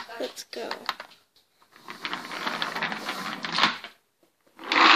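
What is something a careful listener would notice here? A plastic toy car rolls and rattles across a hard floor.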